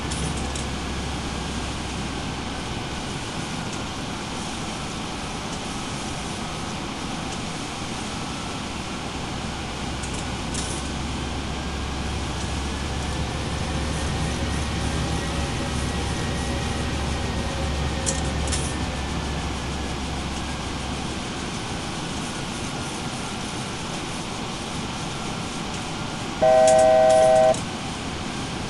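Jet engines drone steadily, heard from inside a cockpit.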